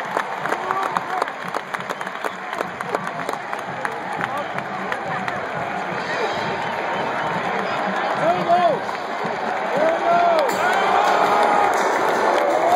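A huge stadium crowd roars and cheers outdoors.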